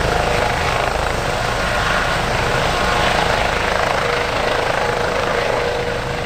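A twin-turbine light helicopter hovers just above the ground, its rotor thudding and its turbines whining.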